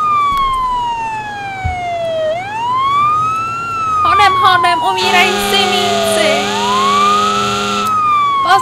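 A fire engine's motor rumbles as it drives.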